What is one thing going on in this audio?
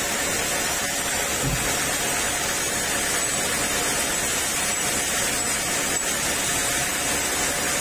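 A band saw whines steadily as its blade runs through wood.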